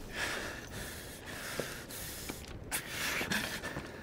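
A young man speaks quietly.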